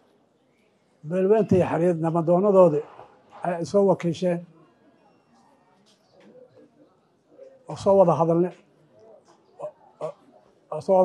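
An elderly man speaks steadily into a microphone over a loudspeaker, in short phrases with pauses.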